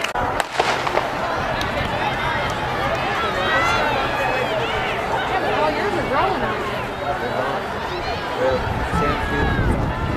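A crowd of young people chatters and cheers outdoors.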